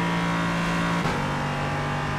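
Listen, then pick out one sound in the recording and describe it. A racing car engine shifts gear with a sudden drop in pitch.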